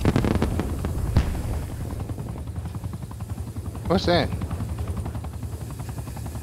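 A smoke grenade hisses steadily nearby.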